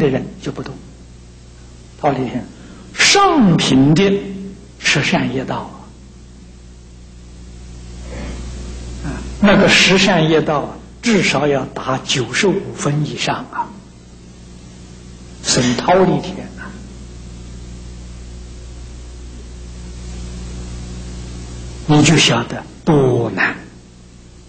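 An elderly man speaks slowly and with emphasis through a microphone, with long pauses, in an echoing hall.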